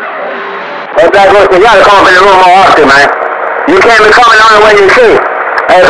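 A radio loudspeaker blares a loud, warbling, distorted signal in two bursts.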